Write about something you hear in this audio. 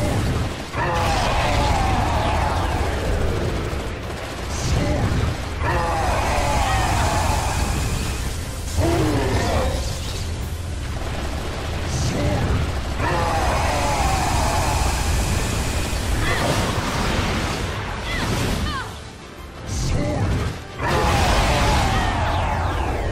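Heavy blows crash and clang in quick succession.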